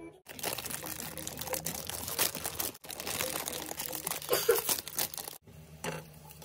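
A plastic noodle packet crinkles and rustles.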